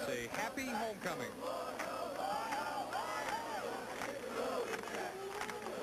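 Fans clap their hands in a crowd.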